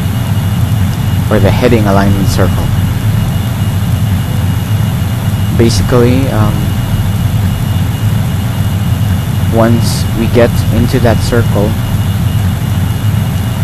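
A steady low engine rumble drones on.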